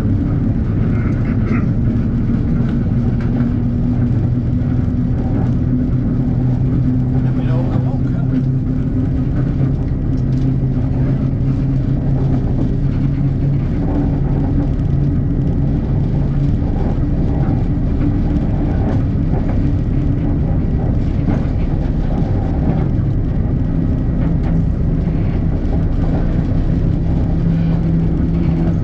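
A steam locomotive rumbles steadily along the track.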